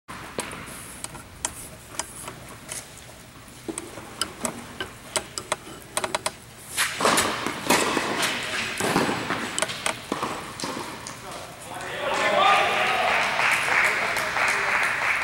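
Tennis balls are struck with rackets and bounce on the court, echoing in a large hall.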